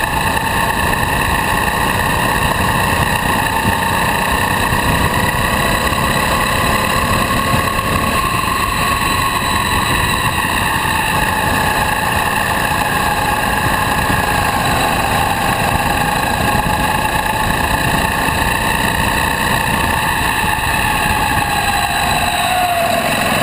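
Wind buffets loudly past.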